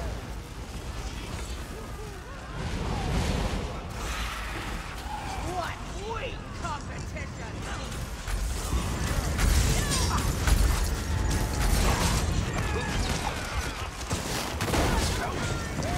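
Metal weapons clang and strike.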